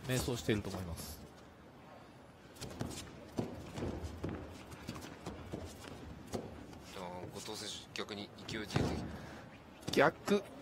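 Bare feet scuff and shuffle on a mat.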